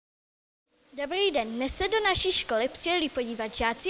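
A young girl speaks with animation, close into a microphone.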